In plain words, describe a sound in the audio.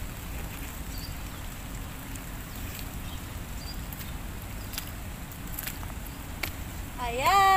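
Leaves rustle in the wind.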